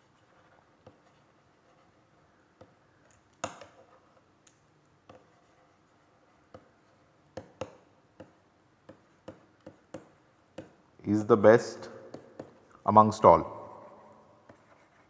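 A stylus taps and scratches while writing.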